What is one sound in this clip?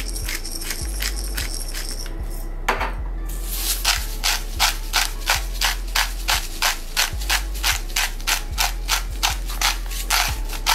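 A pepper grinder crunches in quick, steady turns.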